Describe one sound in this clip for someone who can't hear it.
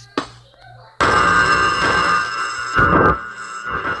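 A monster lets out a loud, harsh roar.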